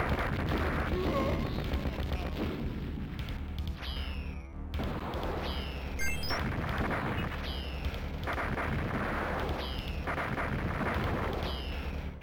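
Game music plays with a steady beat.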